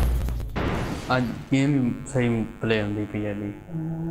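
A young man speaks into a microphone with animation.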